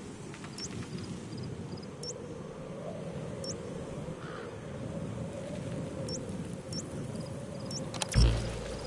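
Short electronic blips sound now and then.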